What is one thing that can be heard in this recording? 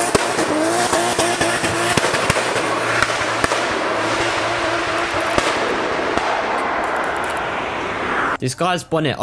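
A car speeds along a road nearby.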